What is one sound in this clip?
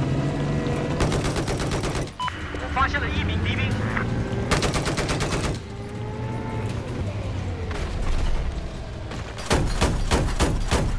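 An autocannon fires in rapid bursts.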